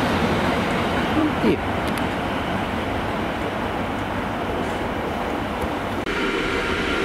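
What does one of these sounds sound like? A passenger train pulls away and rumbles into the distance.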